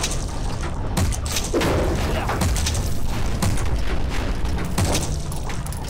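Explosions boom in the game.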